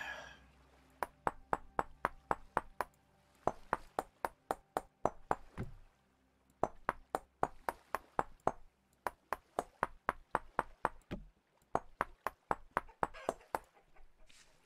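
Wooden blocks are set down with quick, hollow knocks in a steady rhythm.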